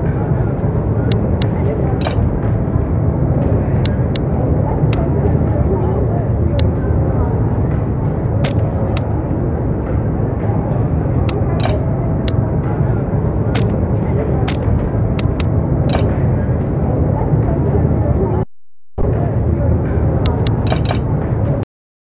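Short menu clicks tick again and again.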